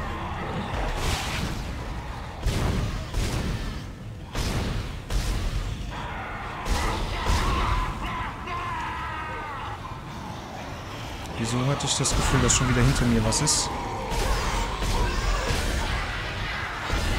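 A plasma gun fires in repeated sharp bursts.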